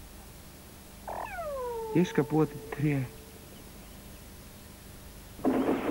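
Small birds chirp.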